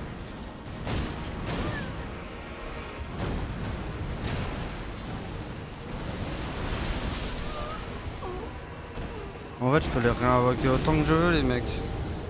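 Loud magical blasts boom and rumble.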